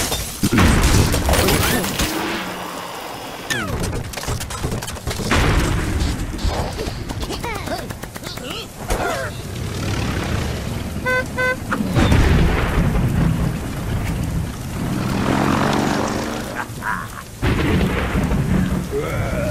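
Cartoon sound effects pop and whoosh.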